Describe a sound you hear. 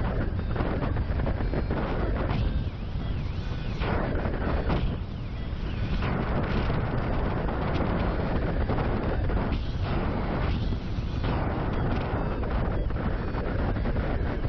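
Strong wind rushes and buffets loudly outdoors.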